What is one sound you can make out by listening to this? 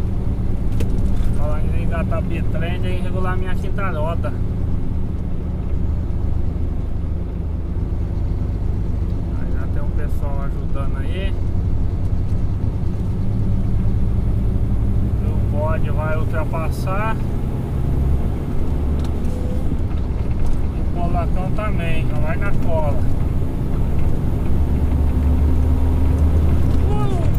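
Tyres roll and hum on a paved road.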